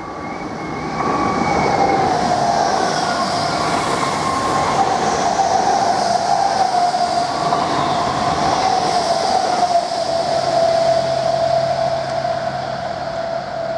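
A train's electric motors whine steadily as it passes.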